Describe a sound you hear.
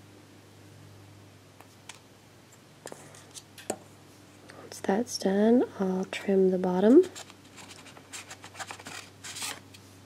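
A metal blade scrapes softly against a small wooden piece.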